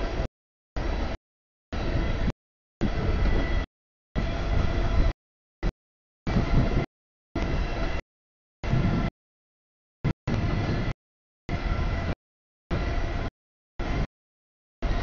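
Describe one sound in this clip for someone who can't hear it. A freight train rumbles and clatters past nearby.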